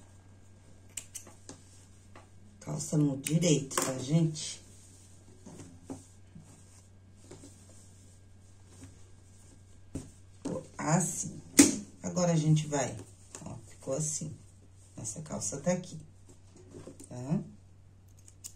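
Cloth rustles as hands handle it.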